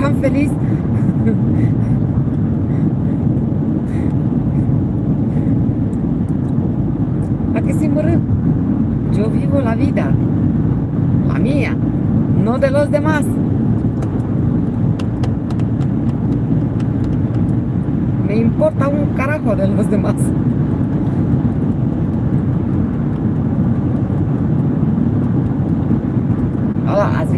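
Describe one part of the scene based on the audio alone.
A car engine hums steadily with road rumble inside the cabin.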